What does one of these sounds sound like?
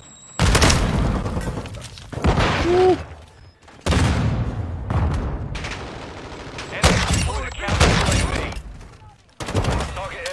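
Gunfire from a video game bursts loudly in short volleys.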